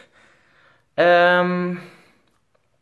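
A young man hums a long, steady note.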